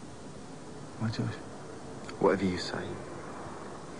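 A man speaks in a low, quiet voice.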